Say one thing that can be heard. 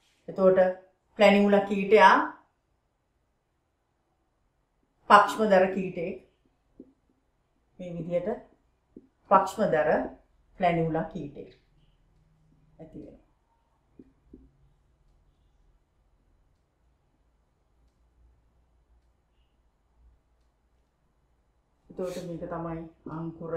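A middle-aged woman speaks calmly in short phrases, close by.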